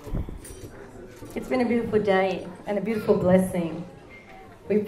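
A middle-aged woman talks into a microphone.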